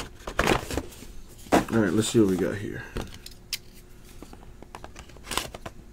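A cardboard box is opened with soft scrapes and taps.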